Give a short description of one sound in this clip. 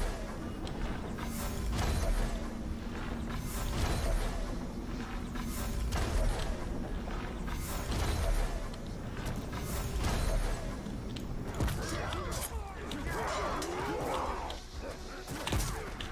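Sword blows and hits thud and clang in quick succession.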